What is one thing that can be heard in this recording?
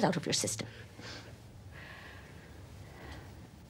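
An elderly woman speaks softly and soothingly.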